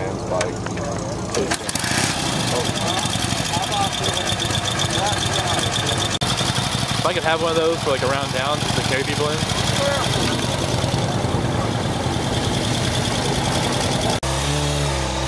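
An old motorcycle engine idles with a steady, rattling chug.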